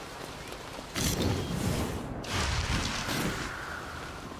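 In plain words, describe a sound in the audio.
Fiery energy bursts whoosh and roar in loud rushes.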